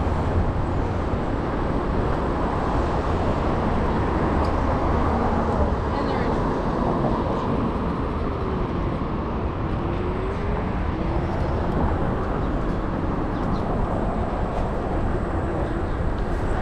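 Wind rushes steadily past, outdoors.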